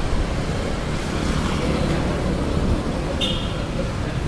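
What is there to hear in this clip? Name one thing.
Motorbike engines rumble past on a busy street.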